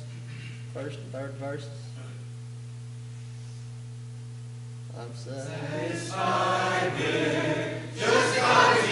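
A young man speaks into a microphone, heard through loudspeakers in a large room.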